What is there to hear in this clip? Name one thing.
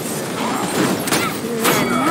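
An energy blast crackles and whooshes.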